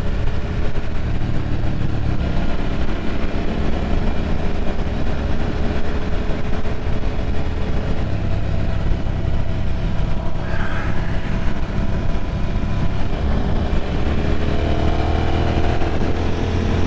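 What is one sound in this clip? A motorcycle engine roars steadily up close, its pitch rising and falling.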